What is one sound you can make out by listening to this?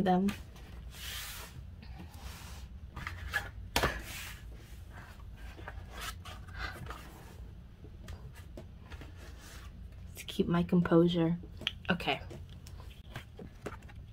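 Hands handle and slide cardboard album packaging across a table.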